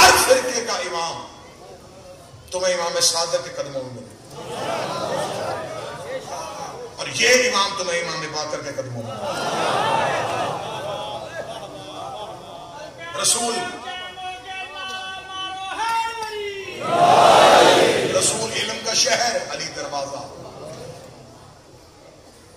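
A middle-aged man orates with fervour through a microphone and loudspeakers, raising his voice.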